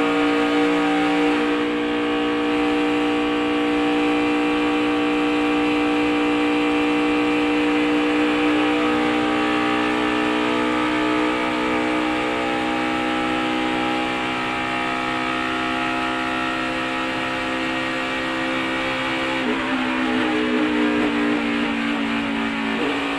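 A race car engine roars at high revs close by.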